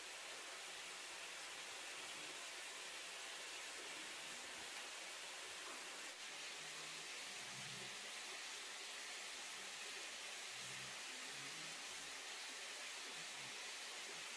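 A blanket rustles softly.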